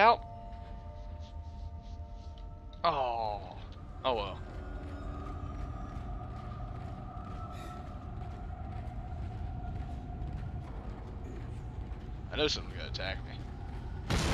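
Heavy metal boots thud on a hard floor.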